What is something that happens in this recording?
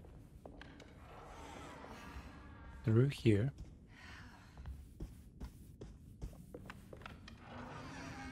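A heavy wooden door creaks open.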